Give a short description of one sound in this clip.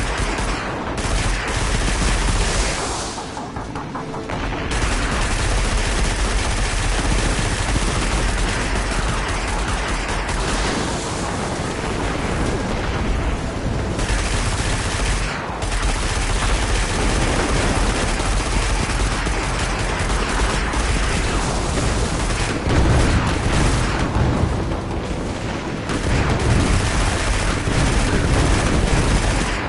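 A hover vehicle's engine roars steadily.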